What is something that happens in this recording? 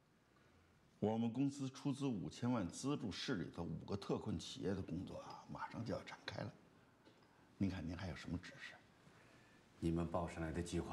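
An older man talks in a relaxed, conversational voice.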